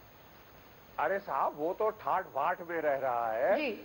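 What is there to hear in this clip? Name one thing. A man speaks with animation through a broadcast microphone.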